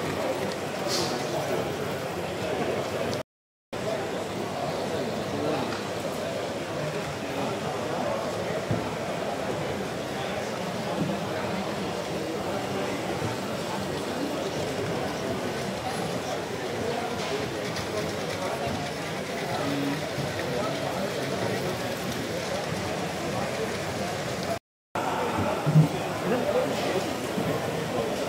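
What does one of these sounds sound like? A crowd of adults chatters in a large indoor hall.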